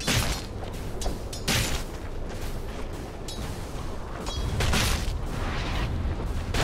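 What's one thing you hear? Game characters clash in a fight with bursts of spell effects and impacts.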